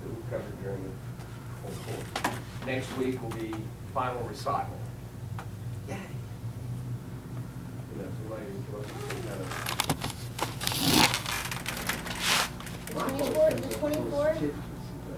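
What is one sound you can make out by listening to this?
An adult woman talks calmly, instructing.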